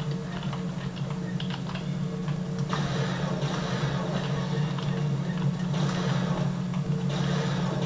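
Game gunfire and explosions play through loudspeakers.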